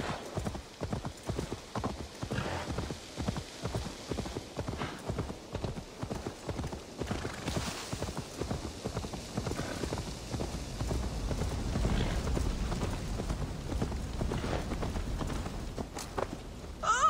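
A horse's hooves thud rapidly on soft ground.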